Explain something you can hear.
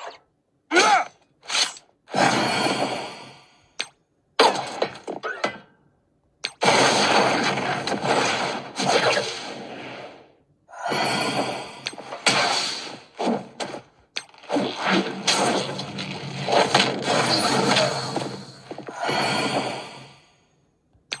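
Game battle sound effects crash and whoosh in bursts.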